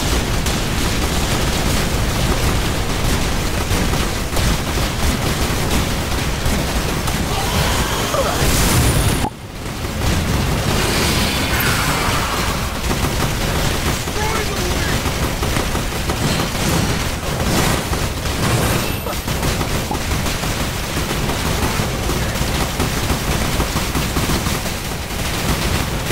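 Rapid gunfire rattles nonstop.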